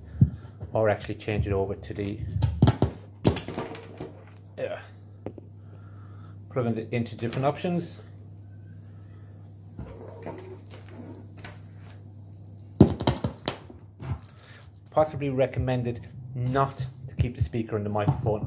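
Cables rustle and clatter as they are handled.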